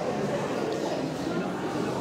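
A woman speaks into a microphone in an echoing hall.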